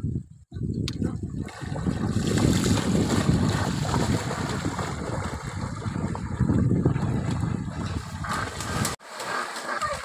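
Water splashes loudly as boys run and wade through a shallow river.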